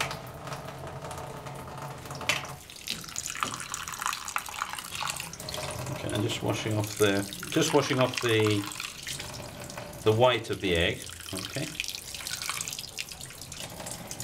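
Water runs from a tap and splashes into a metal sink.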